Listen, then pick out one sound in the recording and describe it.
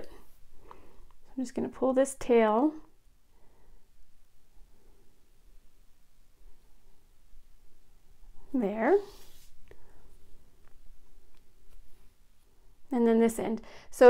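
Small metal rings clink softly between fingers.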